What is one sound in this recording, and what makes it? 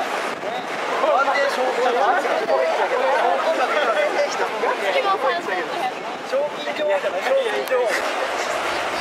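Young people chatter and talk among themselves nearby.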